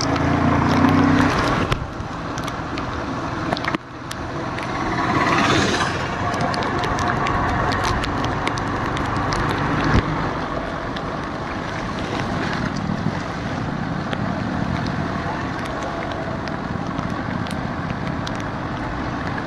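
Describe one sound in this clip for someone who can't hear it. A motor engine hums steadily close by.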